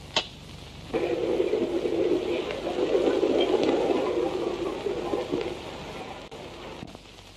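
A crowd murmurs and bustles.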